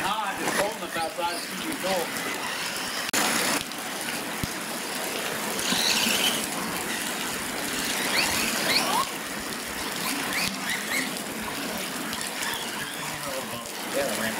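Small electric motors whine as remote-control trucks drive fast.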